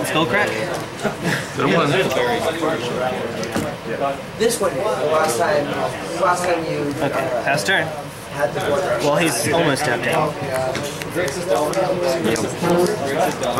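Playing cards are tapped and slid on a tabletop.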